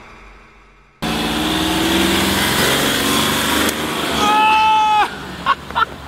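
A car drives past on a road.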